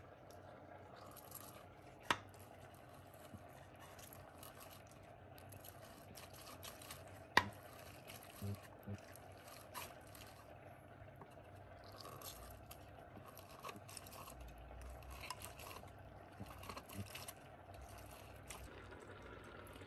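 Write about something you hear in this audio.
A lemon is squeezed and twisted on a plastic juicer, squelching and scraping.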